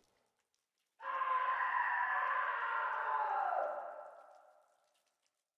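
A man calls out loudly.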